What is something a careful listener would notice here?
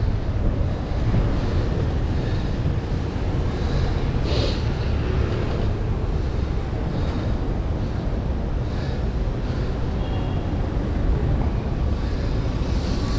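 Wind rushes past loudly while cycling outdoors.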